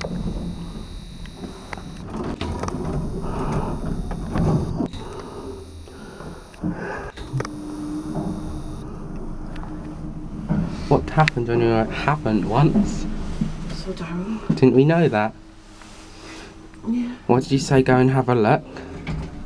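An elevator hums softly as it moves.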